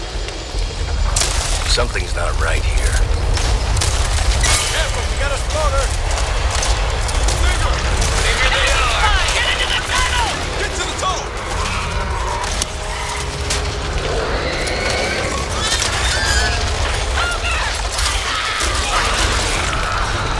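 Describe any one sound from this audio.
A shotgun fires in loud, repeated blasts.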